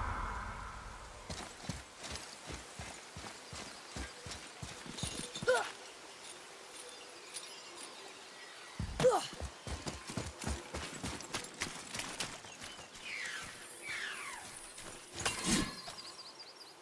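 Footsteps crunch on grass and dirt at a steady pace.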